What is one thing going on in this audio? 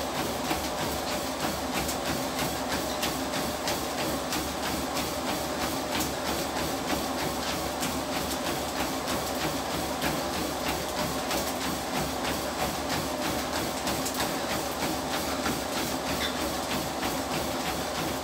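A treadmill motor hums steadily.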